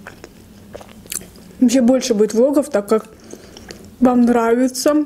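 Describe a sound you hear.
Pizza crust crackles as a young woman tears a slice.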